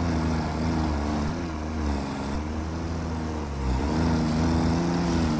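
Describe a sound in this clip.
A heavy truck engine rumbles steadily, its pitch shifting as it drives.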